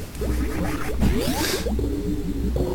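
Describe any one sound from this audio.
A door in a game opens with a whooshing hiss.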